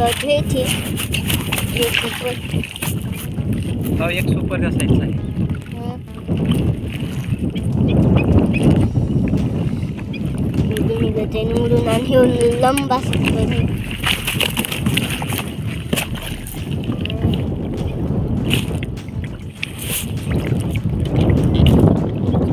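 Water laps and splashes around a small float.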